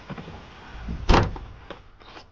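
A car boot lid slams shut.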